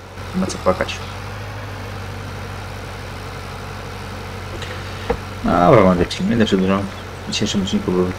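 A tractor engine hums steadily at low speed.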